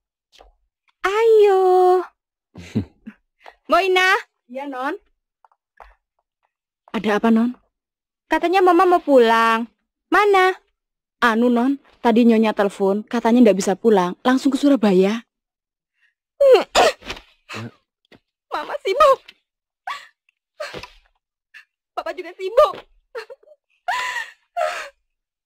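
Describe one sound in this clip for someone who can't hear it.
A young woman speaks with animation, close by.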